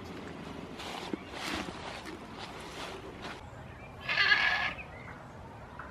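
A goat bleats close by.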